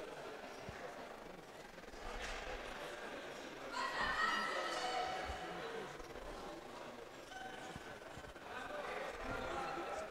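A crowd of spectators murmurs and calls out in a large echoing hall.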